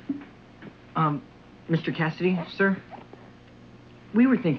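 A man speaks in a low voice nearby.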